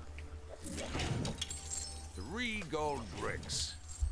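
Coins jingle as they are picked up.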